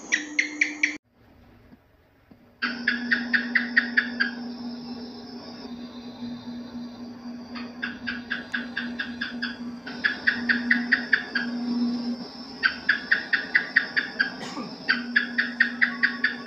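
A gecko chirps in quick bursts of sharp repeated clicks.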